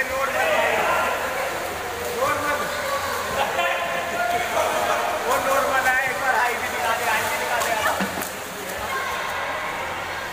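Swimmers splash and kick in the water.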